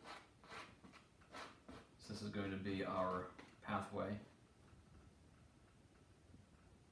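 A brush scrapes and dabs on a canvas.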